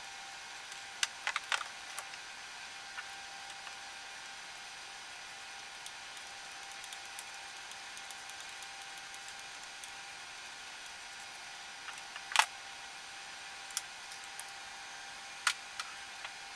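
Metal parts clink and knock sharply now and then.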